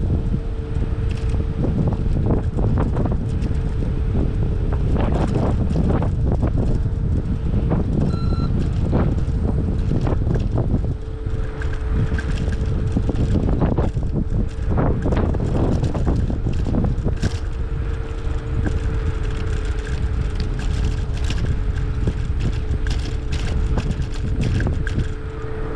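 Wind rushes and buffets loudly past a moving bicycle.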